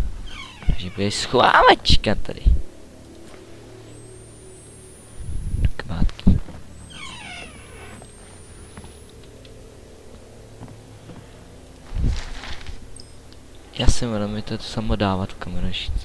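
A young man talks with animation into a headset microphone, close up.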